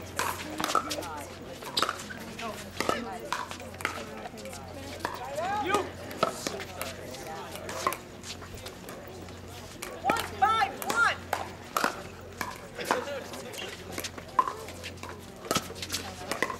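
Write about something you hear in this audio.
Paddles strike a plastic ball with sharp, hollow pops.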